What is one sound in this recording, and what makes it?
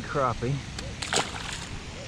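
A fish drops back into the water with a splash.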